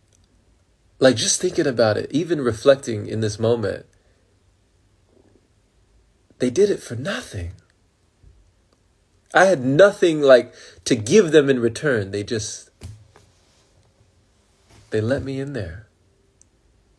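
A young man talks with animation close to the microphone, in short bursts with pauses.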